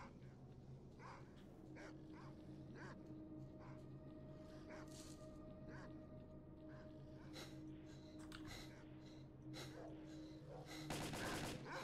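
Footsteps crunch steadily over gravel and dirt.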